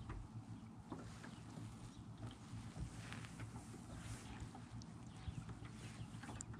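Wind rumbles and buffets against the microphone outdoors.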